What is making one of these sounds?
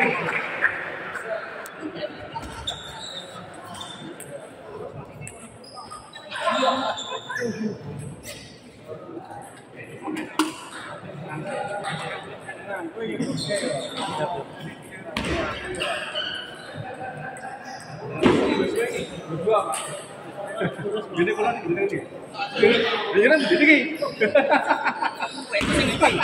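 A crowd of people chatters in an echoing hall.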